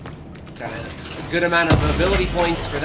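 Electric sparks crackle and burst nearby.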